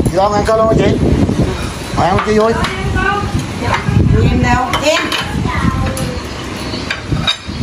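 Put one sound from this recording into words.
Several men and women talk and chat close by with animation.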